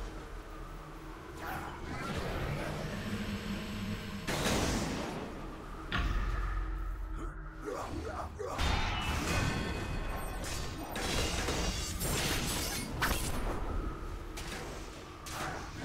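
Magic blasts and sword strikes clash in quick bursts.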